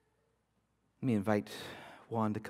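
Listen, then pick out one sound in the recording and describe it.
A man speaks over a microphone in a large room.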